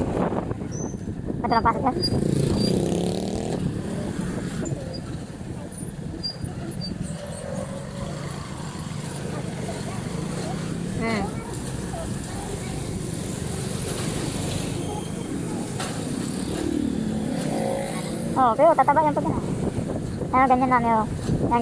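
A motorcycle engine hums steadily while riding along a street.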